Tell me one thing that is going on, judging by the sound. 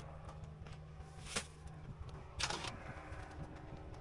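Soil and stones thud and rattle onto the ground.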